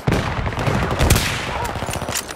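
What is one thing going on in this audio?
A sniper rifle fires a single loud shot.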